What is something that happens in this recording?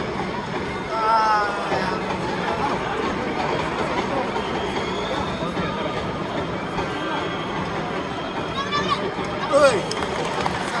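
Football players shout to each other in the distance.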